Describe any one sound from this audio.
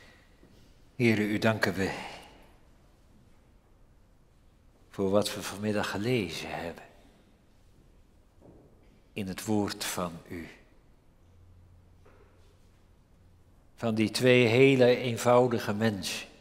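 An elderly man speaks slowly and calmly into a microphone, with pauses, in a lightly echoing room.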